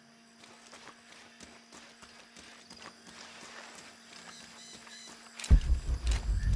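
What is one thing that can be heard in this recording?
Footsteps crunch on a leafy dirt path.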